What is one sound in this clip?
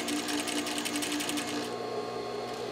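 A sewing machine whirs rapidly.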